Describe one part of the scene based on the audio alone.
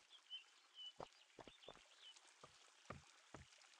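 Footsteps patter softly on grass.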